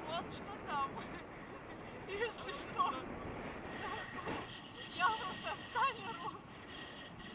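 A woman shrieks and talks excitedly close by.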